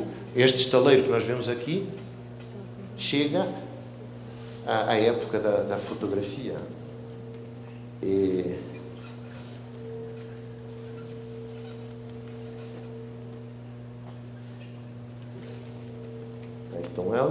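A man speaks calmly through a microphone in an echoing hall, with pauses.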